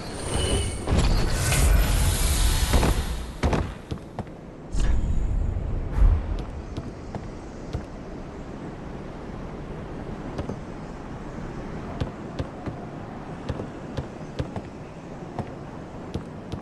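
Armoured footsteps clank on wooden planks.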